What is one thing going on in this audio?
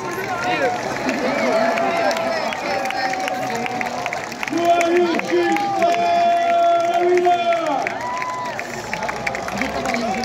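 A large crowd of spectators chatters outdoors.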